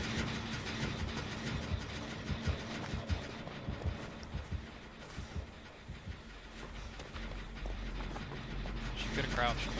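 Footsteps run quickly over grass and wooden boards.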